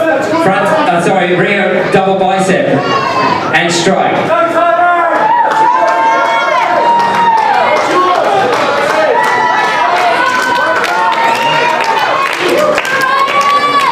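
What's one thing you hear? A crowd of men and women cheers and shouts loudly in a large hall.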